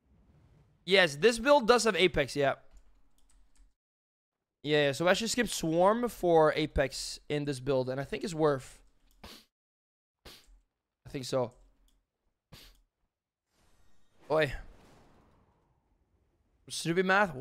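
A young man talks with animation into a nearby microphone, in bursts with pauses.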